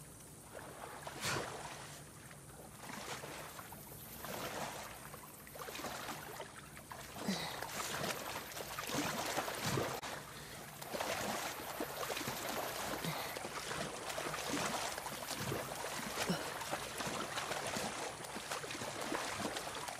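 Water splashes and swishes as someone swims with steady strokes.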